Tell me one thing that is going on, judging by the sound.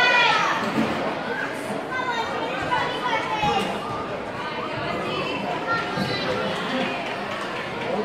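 A gymnast's feet thud on a balance beam.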